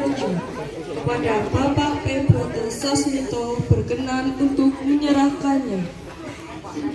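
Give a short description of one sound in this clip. A young woman speaks loudly and with animation close by.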